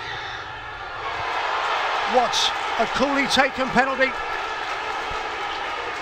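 A stadium crowd erupts in loud cheering.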